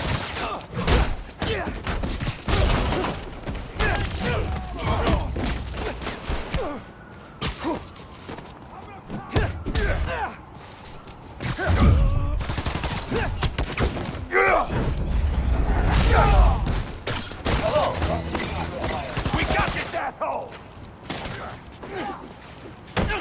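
Men shout and grunt as they fight.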